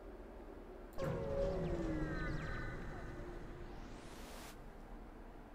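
A spaceship jumps in with a sudden burst and falling electronic tones.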